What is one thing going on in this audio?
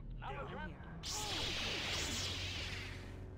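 Lightsabers hum and buzz.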